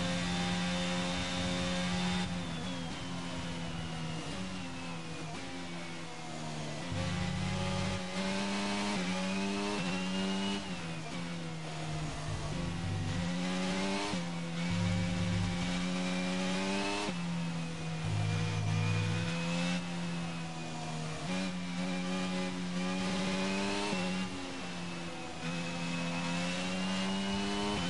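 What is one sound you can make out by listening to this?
A racing car engine hums steadily at low revs, its pitch rising and dropping with each gear change.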